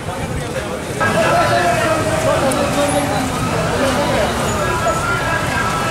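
A crowd of men shout and talk loudly close by.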